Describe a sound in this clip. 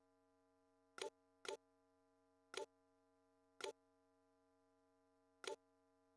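A short menu click sounds several times as a selection moves.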